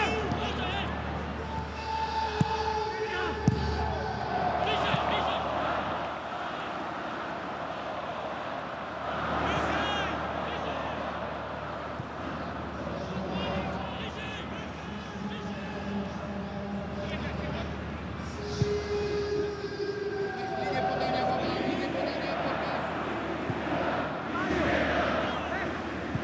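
A large stadium crowd chants and cheers throughout.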